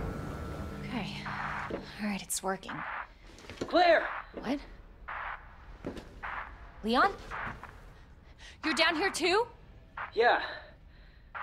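A young woman speaks in a puzzled, cautious voice.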